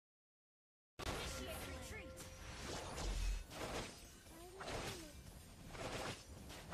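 Video game sound effects whoosh and clash.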